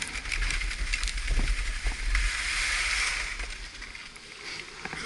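Skis scrape over hard snow.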